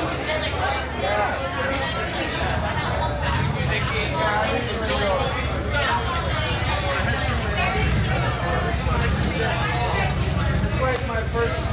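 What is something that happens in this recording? A drum kit is played loudly through a live sound system.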